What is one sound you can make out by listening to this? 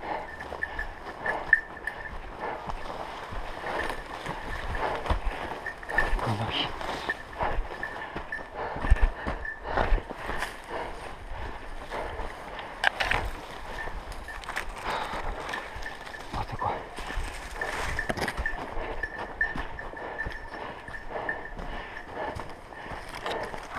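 Footsteps crunch on dry leaves and twigs.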